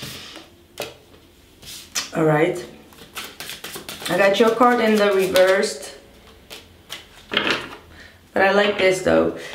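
Cards shuffle and flick softly in a young woman's hands.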